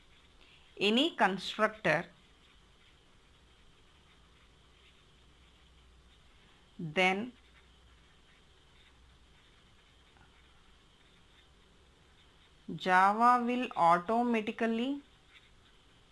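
A felt pen scratches softly on paper.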